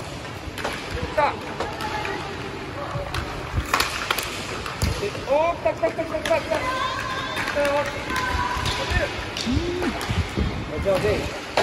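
Children shout and call out in high voices across the hall.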